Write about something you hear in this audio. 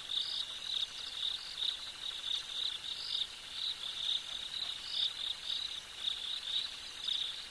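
An animal walks slowly through tall grass, rustling it softly.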